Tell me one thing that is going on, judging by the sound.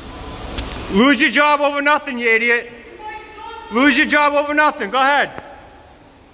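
A man shouts loudly in a large echoing space.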